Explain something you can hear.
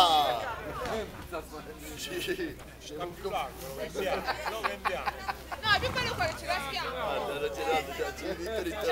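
Several men talk and call out loudly outdoors.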